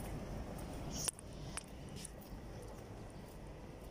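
Footsteps tap on a concrete path outdoors.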